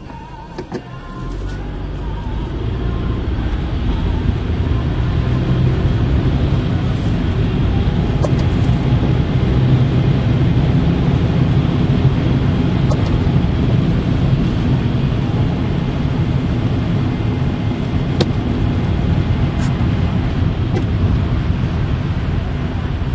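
Tyres hiss on a wet, slushy road.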